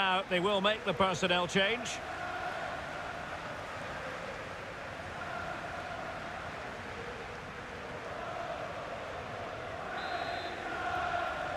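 A large crowd murmurs and cheers steadily.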